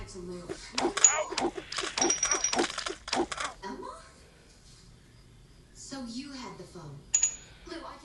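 Coins chime as they are collected.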